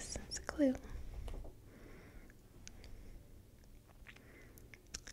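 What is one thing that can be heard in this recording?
A young woman reads aloud calmly into a close microphone.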